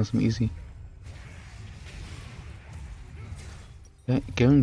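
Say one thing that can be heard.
A video game battle clatters with spell and weapon effects.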